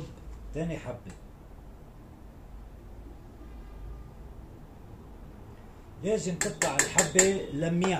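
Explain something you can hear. Metal clinks against a metal pot.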